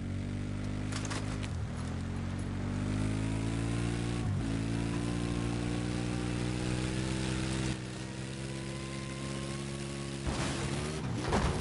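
A vehicle clatters and thumps over bumps.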